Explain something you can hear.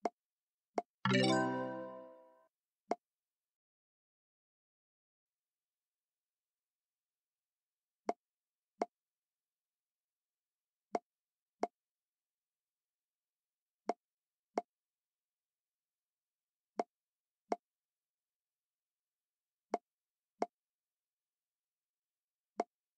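Short game clicks pop as balls are moved between tubes.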